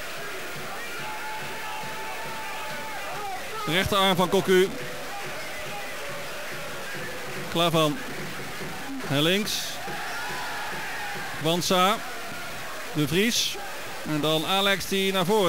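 A large crowd roars and murmurs steadily in a stadium.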